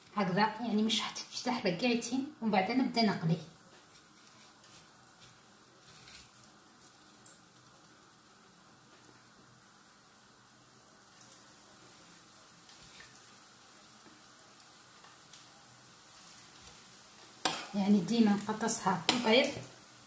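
Hands pat and press food into dry breadcrumbs with a soft rustle.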